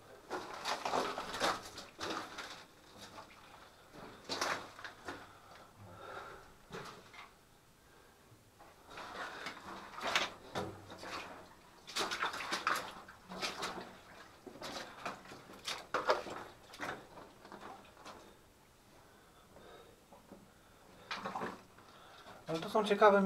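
Footsteps crunch on loose rock and gravel in a narrow tunnel.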